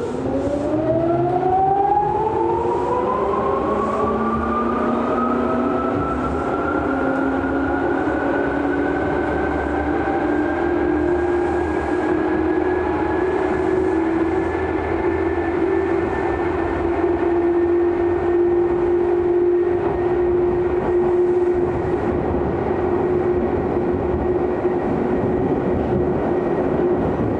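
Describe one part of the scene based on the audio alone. An electric commuter train's chopper-controlled motors whine, rising in pitch as the train speeds up, then holding steady.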